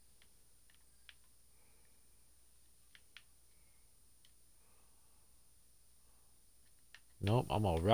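Gunshots crack in short sharp bursts.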